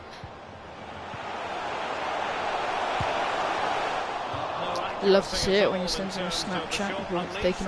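A stadium crowd roars loudly.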